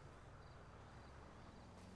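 A car engine hums in the distance as a car approaches.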